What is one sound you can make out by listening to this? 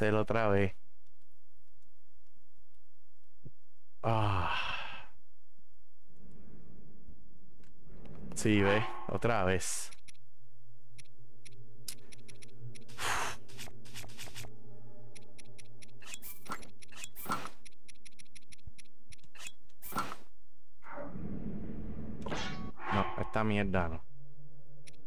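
A man talks with animation, heard close through a microphone.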